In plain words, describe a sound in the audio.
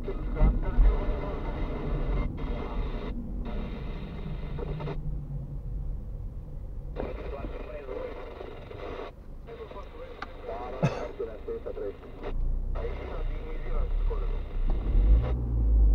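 A car engine hums steadily from inside the vehicle.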